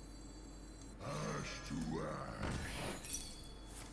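Magical game sound effects chime and swoosh as a card is played.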